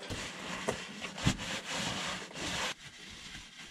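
A cloth rubs and rustles against metal close by.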